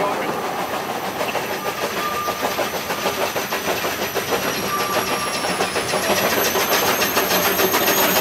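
A narrow-gauge steam locomotive chuffs as it approaches.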